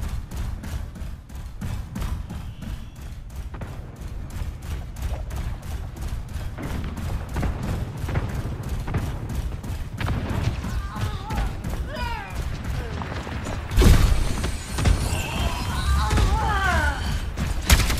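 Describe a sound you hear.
Footsteps thud quickly.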